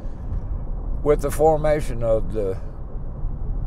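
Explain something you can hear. A middle-aged man speaks briefly and calmly close by.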